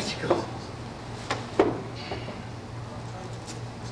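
A body thuds onto a carpeted floor.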